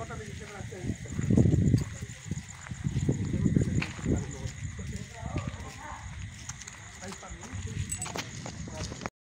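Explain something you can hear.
Footsteps scuff on pavement nearby.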